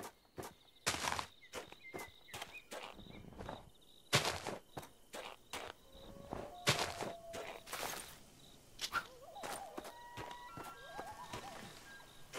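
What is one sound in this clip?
Footsteps crunch over snow.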